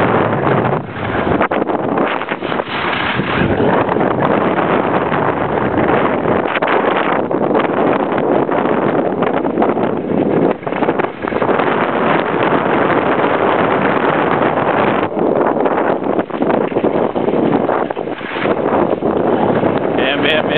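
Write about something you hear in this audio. Skis scrape and hiss over hard snow.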